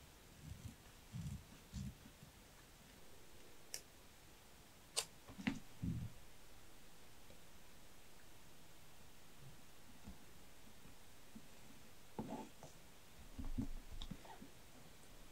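Paper rustles softly under handling fingers.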